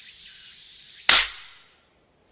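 A wooden stick strikes with a single sharp smack.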